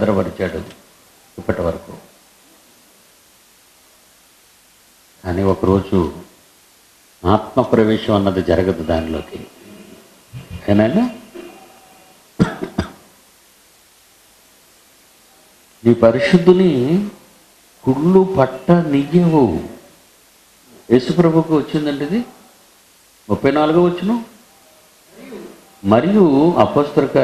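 A man speaks slowly and thoughtfully into a microphone, with long pauses.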